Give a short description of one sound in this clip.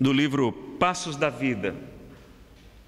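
A young man speaks through a microphone.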